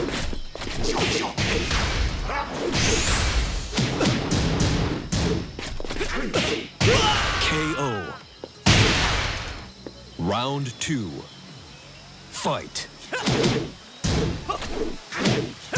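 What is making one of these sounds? Punches and kicks land with sharp, heavy thuds in quick bursts.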